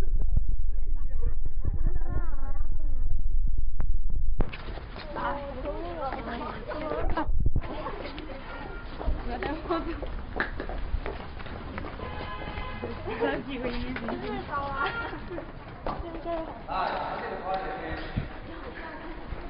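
Young women and men chatter around in a crowd close by.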